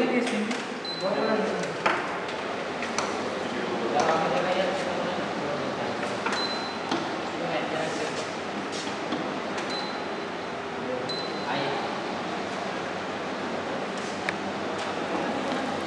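Metal parts clink and click as a machine is worked on.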